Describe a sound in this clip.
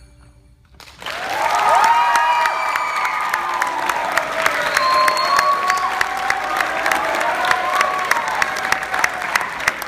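A young girl sings into a microphone in a large echoing hall.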